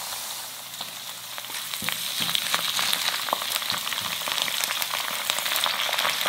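Cabbage leaves drop into a sizzling pan.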